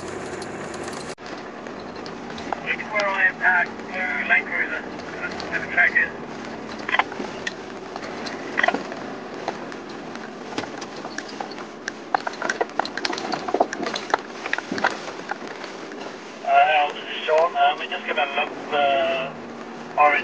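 A vehicle engine hums steadily as it drives slowly.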